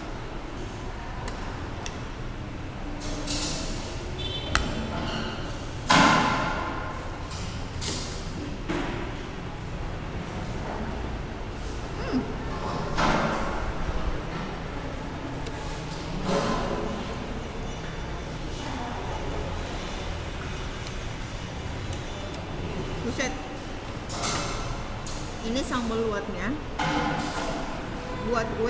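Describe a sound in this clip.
A fork and spoon clink against a plate.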